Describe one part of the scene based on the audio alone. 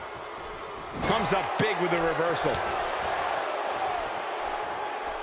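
A crowd swells into a loud cheer.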